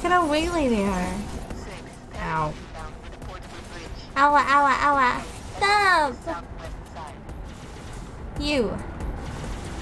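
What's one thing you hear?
A young woman talks animatedly into a microphone, her voice rising and falling in pitch.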